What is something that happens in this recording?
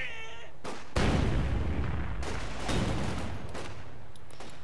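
An explosion booms with a low rumble.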